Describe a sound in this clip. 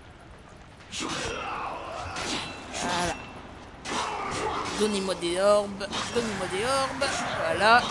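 Swords clash and slash in a fight.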